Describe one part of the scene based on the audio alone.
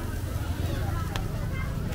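An electric fan whirs steadily.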